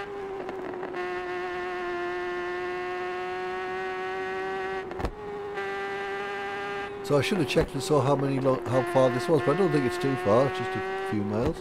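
A motorcycle engine whines at high revs throughout.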